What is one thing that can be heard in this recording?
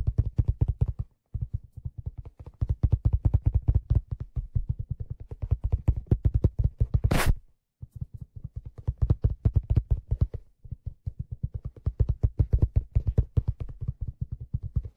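A hand drum is struck rapidly with the fingers, giving deep, booming beats close up.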